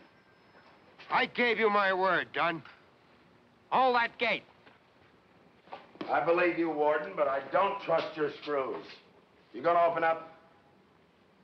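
A middle-aged man shouts angrily nearby.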